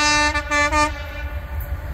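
A train horn blares.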